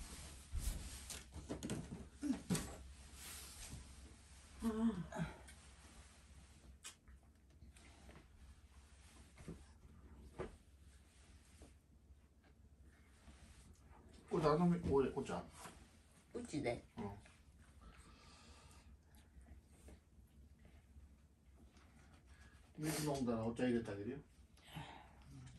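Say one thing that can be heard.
An elderly woman speaks softly in a frail voice.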